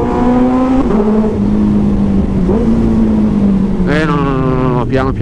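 A motorcycle engine hums steadily, then revs up sharply near the end.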